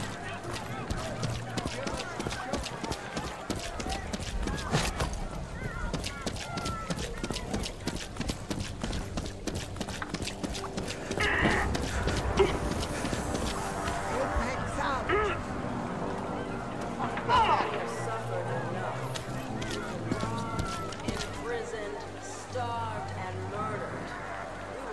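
Footsteps run quickly over wet cobblestones.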